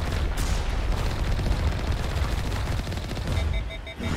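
Blasts of weapon fire burst nearby.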